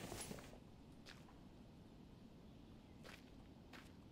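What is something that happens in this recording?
Footsteps crunch softly on dry dirt.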